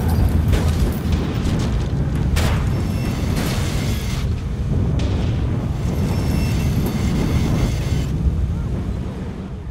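A car engine roars steadily while driving.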